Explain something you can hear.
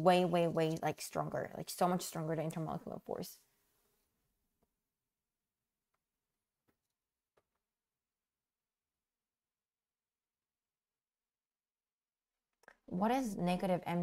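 A young woman speaks calmly and clearly into a close microphone, with pauses.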